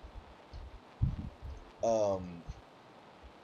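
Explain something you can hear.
Crunchy chewing sounds of someone eating an apple.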